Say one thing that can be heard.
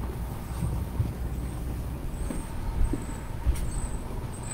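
Footsteps walk away indoors.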